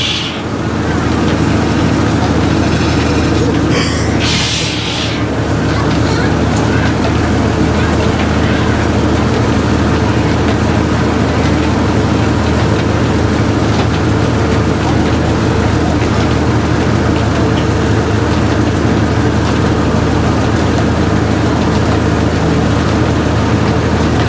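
A machine engine runs with a steady low drone outdoors.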